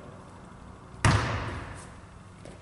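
A basketball bounces hard on a wooden floor and echoes.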